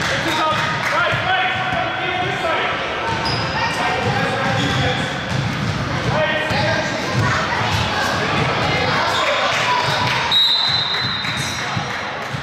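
Children shout and chatter in a large echoing hall.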